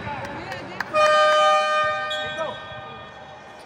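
A referee's whistle blows a long, sharp blast.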